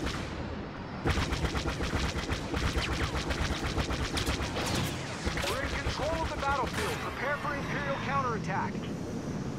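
Blaster cannons fire in rapid bursts.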